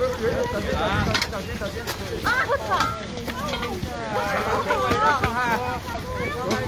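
A crowd of men and women talk and shout over each other close by, outdoors.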